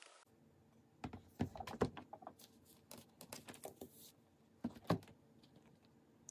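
Small objects are set down on a desk with soft knocks.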